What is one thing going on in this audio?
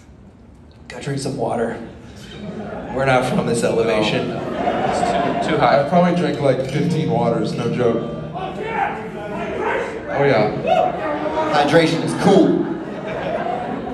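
A man sings into a microphone, heard through loudspeakers.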